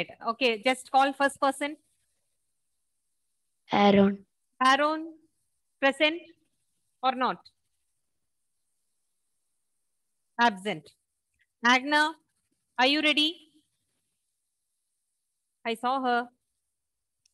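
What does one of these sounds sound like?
A woman speaks into a headset microphone in short phrases.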